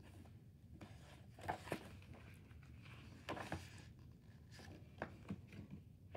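Paper pages rustle and flap as a book is flipped shut.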